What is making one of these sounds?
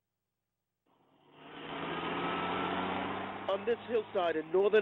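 A bulldozer engine rumbles steadily outdoors.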